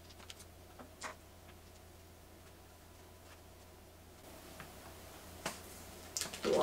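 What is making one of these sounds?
Small wooden pins click as they are set on a board.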